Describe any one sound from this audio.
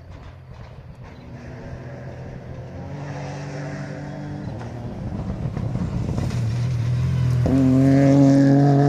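A rally car engine roars and revs as the car speeds closer outdoors.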